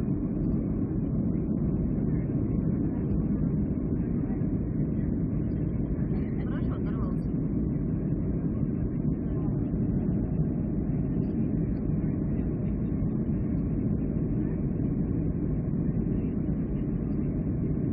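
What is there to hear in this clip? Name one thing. The engines of a jet airliner roar steadily, heard from inside the cabin.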